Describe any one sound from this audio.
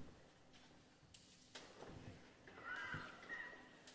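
An orchestra plays, with violins and brass, in a large hall.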